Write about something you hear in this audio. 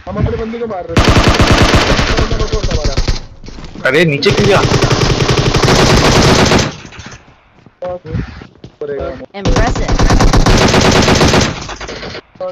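Automatic gunfire rattles in rapid, loud bursts.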